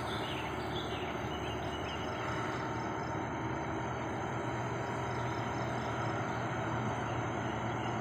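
A motorcycle passes by.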